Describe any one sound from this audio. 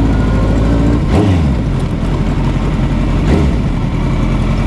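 A motorcycle engine revs briefly twice.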